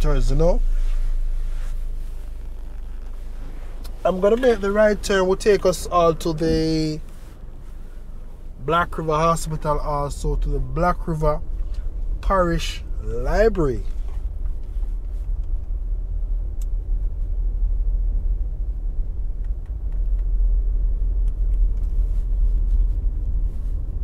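Wind rumbles steadily, heard while driving outdoors.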